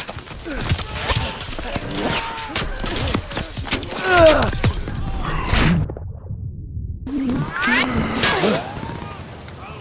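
Explosions boom and crack.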